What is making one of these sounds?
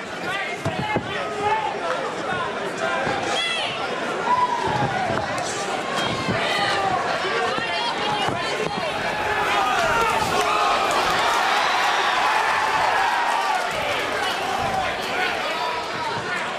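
A large crowd cheers and shouts throughout.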